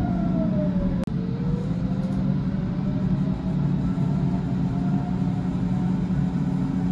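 Another train passes close by.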